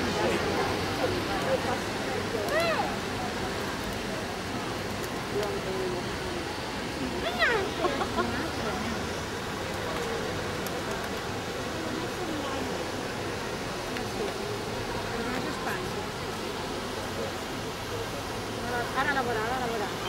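A crowd murmurs outdoors in a wide open square.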